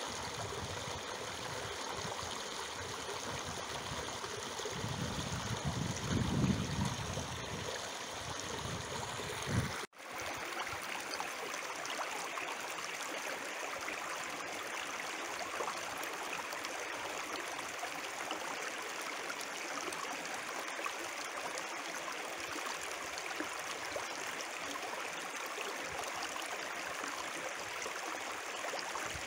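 Shallow water ripples and burbles steadily over stones close by.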